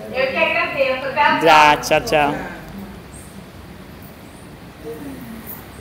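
A woman speaks cheerfully close to a microphone.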